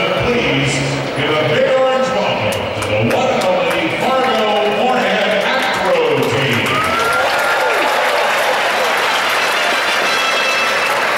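A large crowd cheers and chatters in a big echoing arena.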